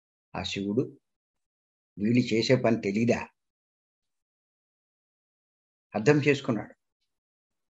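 An elderly man speaks calmly in short bursts over an online call.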